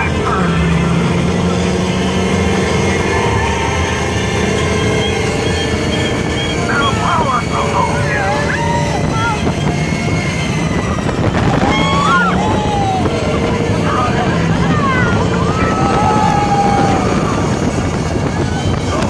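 Wind rushes loudly past an open ride car moving at speed.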